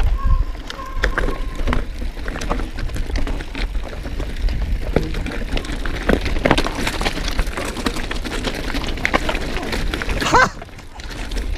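Bike tyres crunch and rattle over loose rocks.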